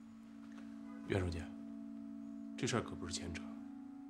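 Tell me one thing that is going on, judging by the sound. An older man speaks slowly and calmly, close by.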